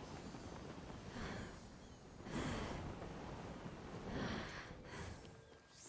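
Wind rushes past in gusts.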